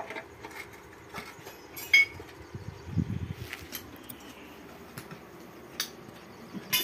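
Metal tools clank and knock against a metal frame.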